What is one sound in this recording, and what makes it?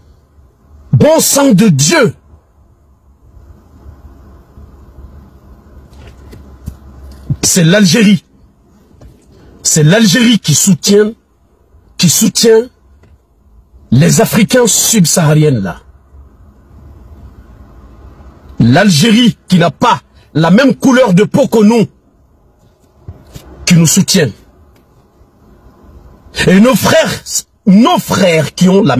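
A man speaks with animation close to a phone microphone, in short bursts with pauses.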